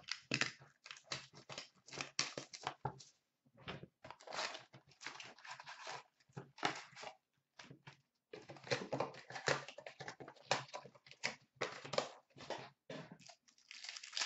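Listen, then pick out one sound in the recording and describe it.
Cardboard boxes scrape and tap as they are handled up close.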